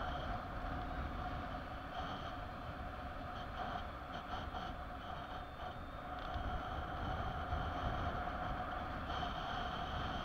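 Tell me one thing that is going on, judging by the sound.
Wind rushes and buffets steadily past the microphone outdoors.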